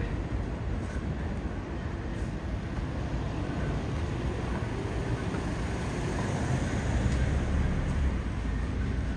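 A car drives slowly closer along a quiet street.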